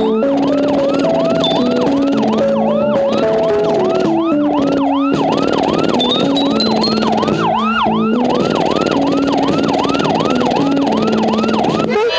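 A siren wails in quick, repeated rising whoops.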